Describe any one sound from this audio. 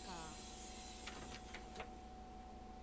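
Bus doors open with a hiss and clatter.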